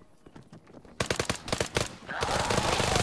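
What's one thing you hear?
Rapid rifle gunfire bursts close by.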